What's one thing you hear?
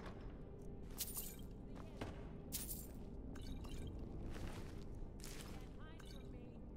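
Coins clink and jingle in short bursts.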